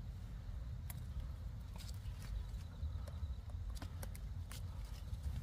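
Leaves rustle and stems snap softly as a hand handles a tomato plant.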